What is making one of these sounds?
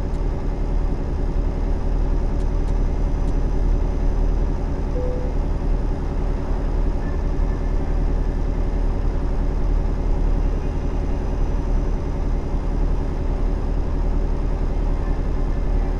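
A truck engine drones steadily as it drives along a road.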